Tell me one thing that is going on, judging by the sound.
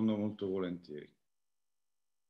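An elderly man speaks briefly over an online call.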